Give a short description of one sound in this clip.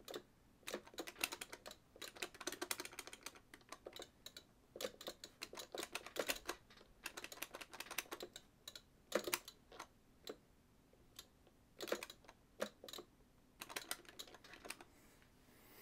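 Arcade game hits and blasts crackle in quick bursts.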